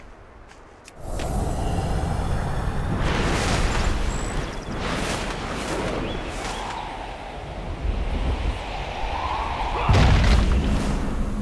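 Wind rushes loudly past a flying dragon.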